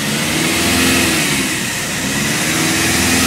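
A car engine briefly drops in pitch during a gear change.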